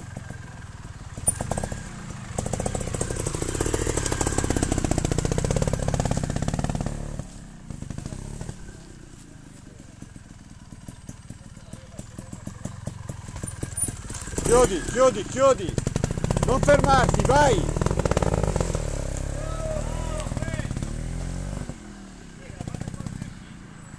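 A small motorbike engine pops and revs sharply close by.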